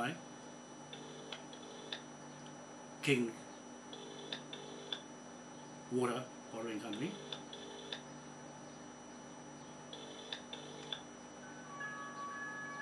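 A phone beeps softly in short tones.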